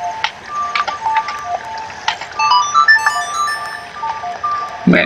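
An ocarina plays a short melody.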